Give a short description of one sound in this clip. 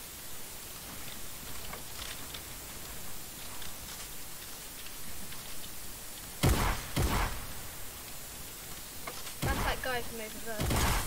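Wooden walls clack into place in a video game.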